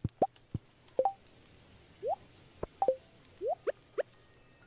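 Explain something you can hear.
Short rising game chimes and blips sound now and then.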